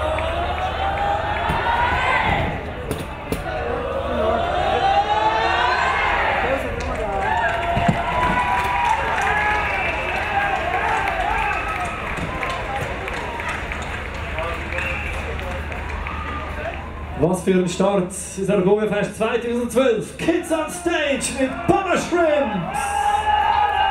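A choir of children and young people sings loudly.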